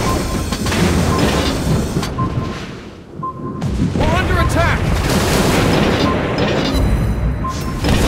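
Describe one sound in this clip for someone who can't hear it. Shells explode with deep rumbling blasts.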